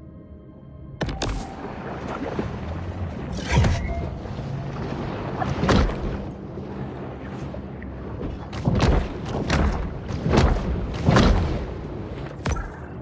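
Underwater ambience rumbles low and steady.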